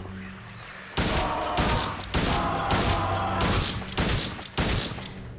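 Pistol shots ring out in quick succession, echoing.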